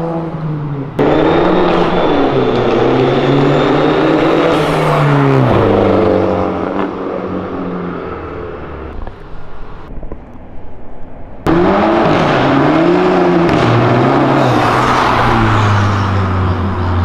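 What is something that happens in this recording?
A car engine revs loudly and rumbles past.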